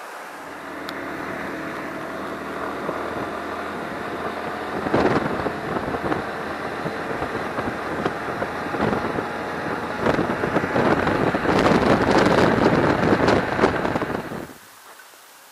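A motorcycle engine drones steadily while riding.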